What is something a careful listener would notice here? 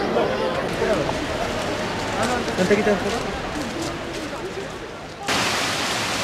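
People chatter nearby.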